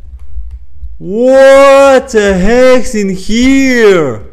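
A young man shouts out loudly in excitement close to a microphone.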